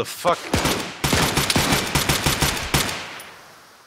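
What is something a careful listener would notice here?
Rapid gunfire rattles in a burst and echoes.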